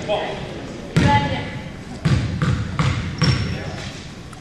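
A basketball bounces with hollow thuds on a wooden floor.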